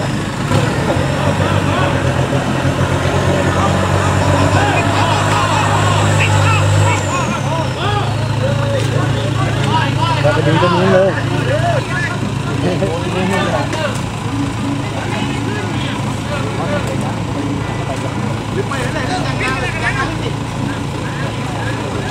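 An engine roars as an off-road vehicle churns through deep mud.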